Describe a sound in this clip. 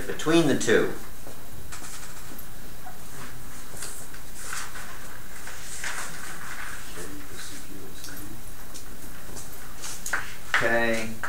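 An elderly man speaks in a lecturing tone.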